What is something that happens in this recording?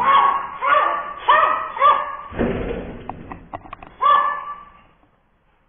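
A small dog barks sharply and repeatedly close by.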